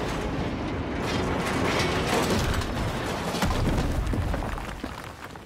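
Metal scrapes and sparks crackle as a mine cart crashes.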